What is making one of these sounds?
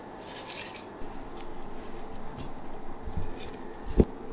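A corn cob is lowered into water in a metal pot.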